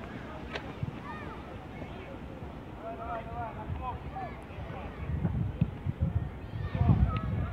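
Young players shout and call out to each other far off outdoors.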